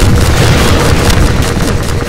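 A rocket launcher fires with a whoosh.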